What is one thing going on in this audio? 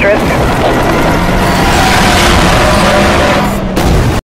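Tyres screech and skid on the road.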